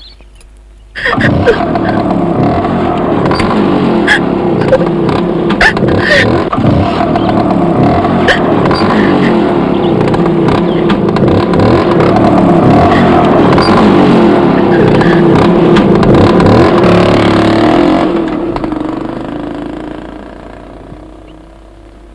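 A scooter drives away and fades into the distance.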